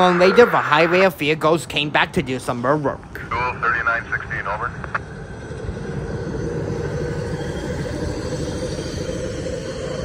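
A pickup truck rolls along railway tracks nearby.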